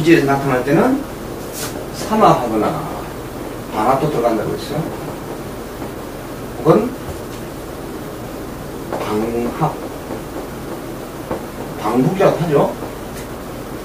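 A middle-aged man speaks calmly in short phrases, close by.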